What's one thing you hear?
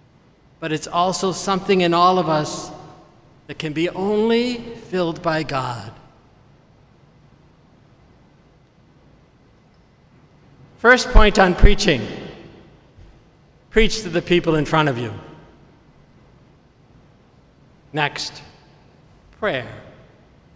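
An elderly man chants slowly through a microphone in a large echoing hall.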